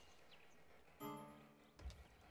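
A short electronic chime sounds once.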